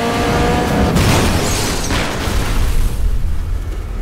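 A car crashes with a loud metallic impact.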